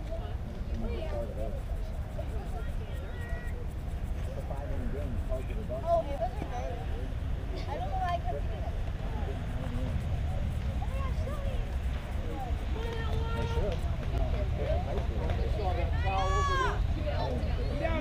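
Distant spectators chatter and call out outdoors.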